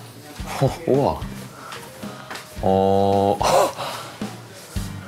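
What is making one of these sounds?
A young man exclaims in wonder nearby.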